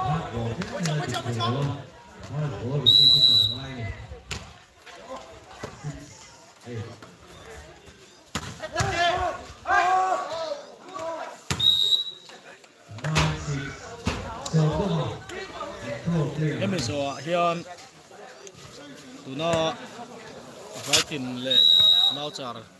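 A volleyball is struck with dull slaps.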